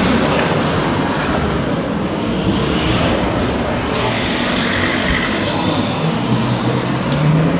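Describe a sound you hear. Footsteps scuff along a paved pavement outdoors.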